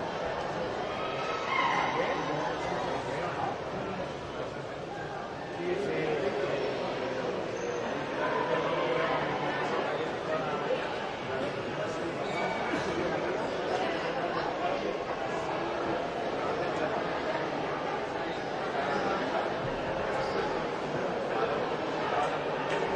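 A crowd of boys and adults chatters in a large echoing hall.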